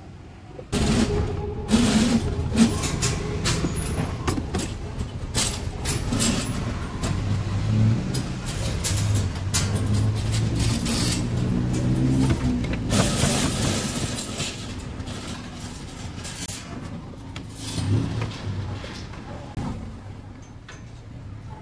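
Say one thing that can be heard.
Traffic rumbles by on a busy street close by.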